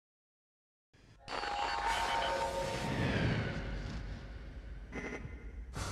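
A spacecraft engine roars and whooshes past.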